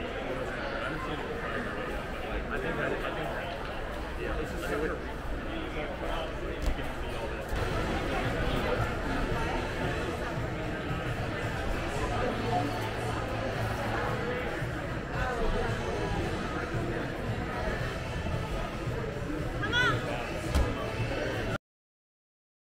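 A crowd of children and adults chatters in the background.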